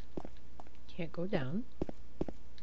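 A young woman speaks briefly and quietly into a microphone.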